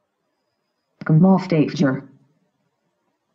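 A computer plays a short startup chime through small speakers.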